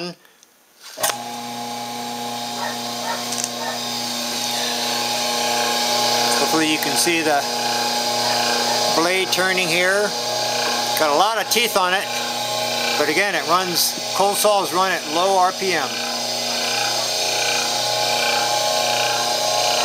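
A saw motor starts up and hums steadily with a high whine.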